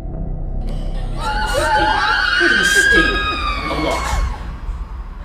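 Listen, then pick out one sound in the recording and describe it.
A man screams in anguish.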